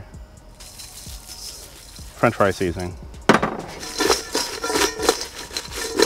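Fries are tossed and scrape around in a metal bowl.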